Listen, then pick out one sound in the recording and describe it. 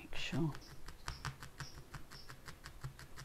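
A needle pokes rapidly into a foam pad with soft, quick taps.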